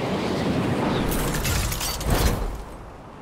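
A glider snaps open with a flapping burst.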